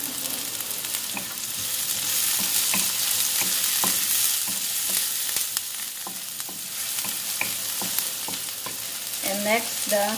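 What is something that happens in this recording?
A wooden spatula stirs and scrapes across a wok.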